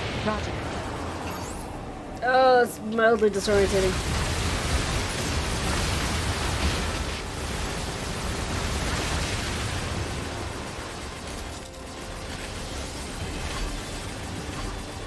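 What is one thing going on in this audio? Gunfire and explosions rattle steadily.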